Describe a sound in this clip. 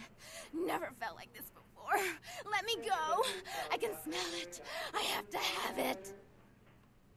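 A young woman pleads frantically in a strained voice.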